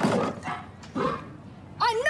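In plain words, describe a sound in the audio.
A woman knocks on a door.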